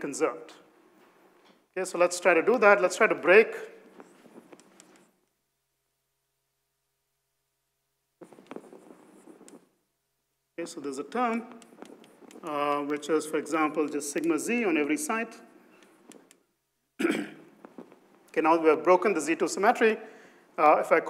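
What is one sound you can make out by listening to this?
A man lectures calmly through a microphone in a large echoing room.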